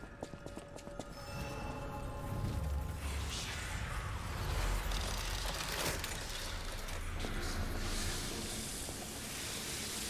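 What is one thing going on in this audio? A shimmering magical hum swells and rings out.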